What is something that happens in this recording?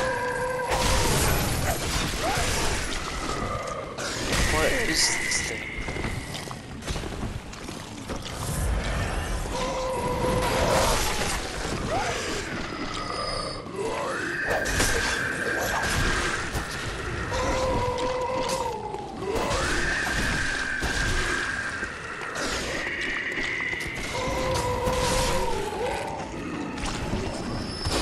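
Blades slash and strike flesh with wet, heavy thuds.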